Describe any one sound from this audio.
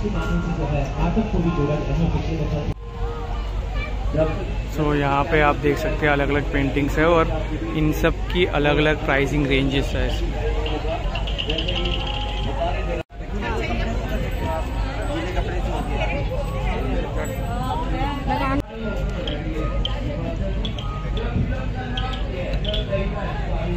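Men and women chatter nearby in a busy outdoor crowd.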